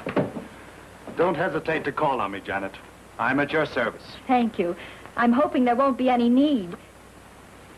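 A man speaks politely to a woman.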